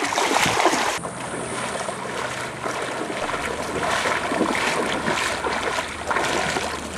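Feet splash through shallow water.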